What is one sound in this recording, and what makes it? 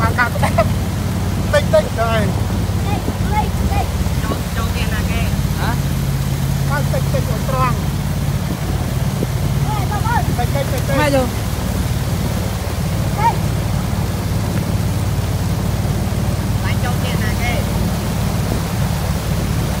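Water rushes and splashes past a moving boat.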